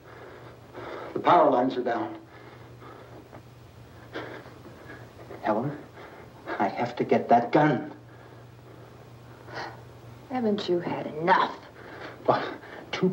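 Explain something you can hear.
A woman speaks softly.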